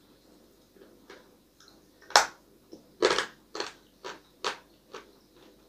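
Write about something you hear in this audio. A young man crunches loudly on something hard.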